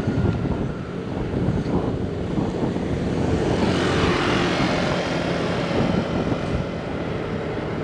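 Wind buffets loudly, like riding a motorbike outdoors.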